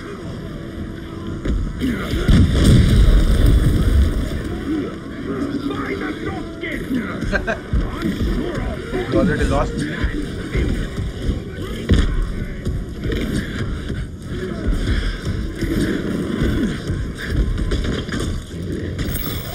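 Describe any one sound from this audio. A huge beast growls and snarls.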